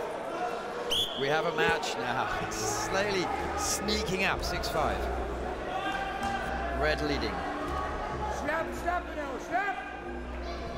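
Shoes squeak and thud on a wrestling mat.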